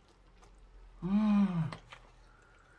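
A man hums with pleasure, drawn out and rising then falling.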